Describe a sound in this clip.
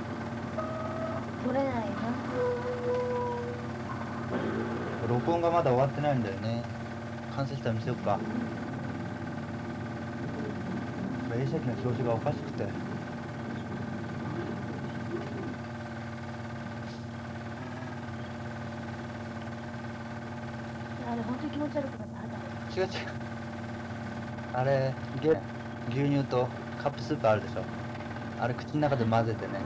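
A film projector whirs steadily.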